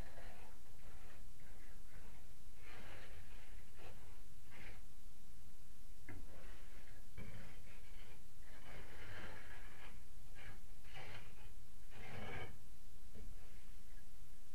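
A scraper rasps against a plaster wall in short bursts.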